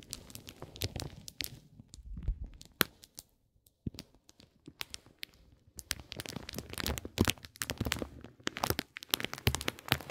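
A wooden stick scrapes and taps crinkly paper wrapping up close.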